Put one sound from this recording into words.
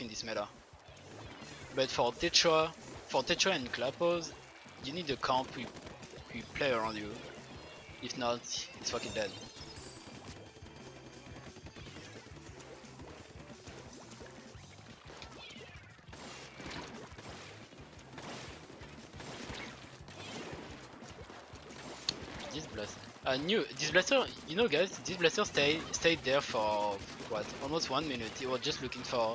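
Cartoonish splatting and shooting sounds from a video game play throughout.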